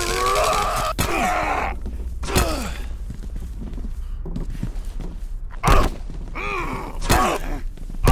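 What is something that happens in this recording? A metal pipe strikes a body with heavy thuds.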